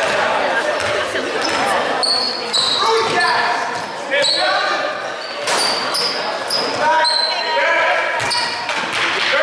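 Young men shout and call out to one another in an echoing hall.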